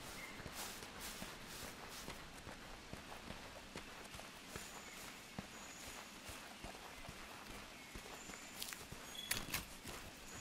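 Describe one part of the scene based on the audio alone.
Insects chirp and buzz in a forest.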